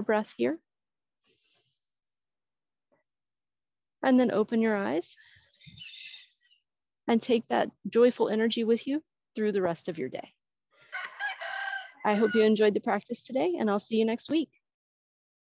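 A woman speaks calmly into a nearby microphone.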